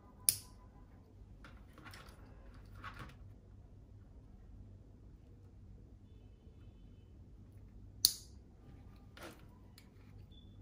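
Small plastic wire connectors click and rustle as they are fitted together.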